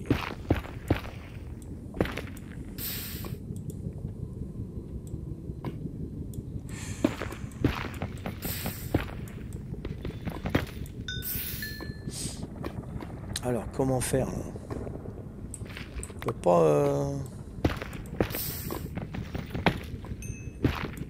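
A pickaxe chips and breaks stone blocks with repeated sharp knocks.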